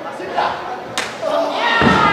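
A hand slaps sharply against a bare chest.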